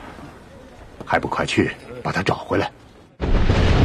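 A man replies in a low voice.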